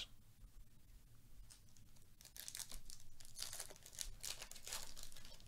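Gloved hands tear open a crinkly foil wrapper.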